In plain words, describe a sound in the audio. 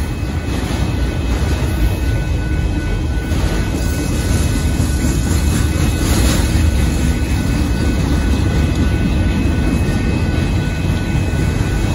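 A railroad crossing bell rings steadily.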